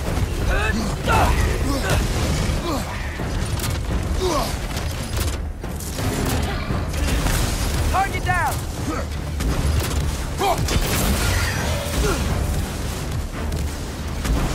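A deep rumble drones throughout.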